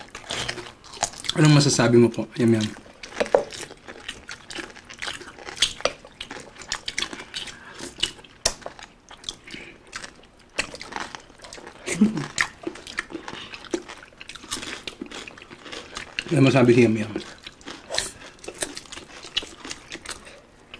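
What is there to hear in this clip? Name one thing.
Crispy food crunches as it is bitten.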